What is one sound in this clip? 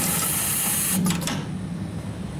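A machine clamp clicks open.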